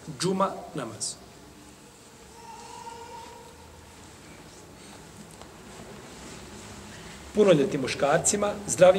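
A middle-aged man speaks calmly and steadily, close to a microphone.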